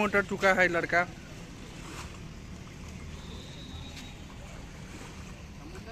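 Water splashes as feet wade through shallow water.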